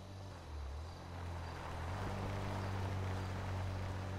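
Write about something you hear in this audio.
A car engine draws near, growing louder.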